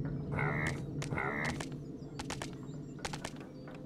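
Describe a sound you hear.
Small creatures scuffle and clash in a fight.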